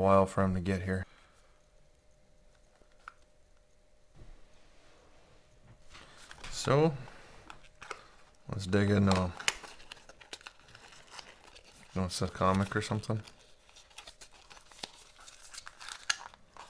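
A cardboard box rustles and taps as it is handled.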